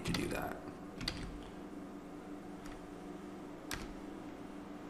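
Keyboard keys click a few times.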